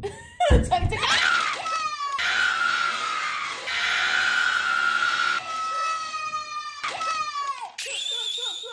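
A young woman screams loudly with excitement.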